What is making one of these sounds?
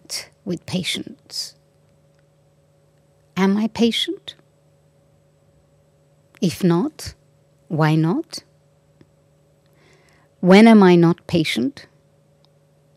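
An elderly woman speaks slowly and calmly into a microphone, with pauses between phrases.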